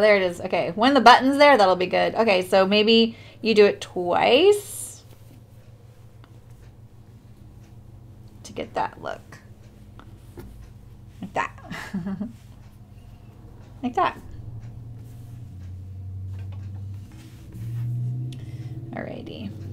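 Fabric rustles as hands fold and smooth it.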